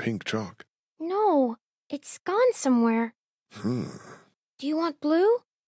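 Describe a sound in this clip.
A young girl answers in a small, soft voice.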